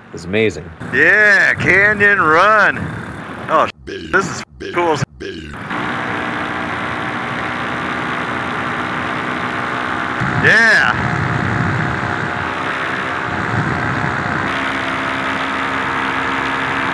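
A small drone's motors whine loudly, swooping up and down in pitch and then holding a steady buzzing drone.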